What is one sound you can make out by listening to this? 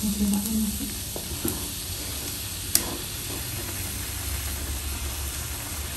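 A silicone spatula stirs food in a frying pan.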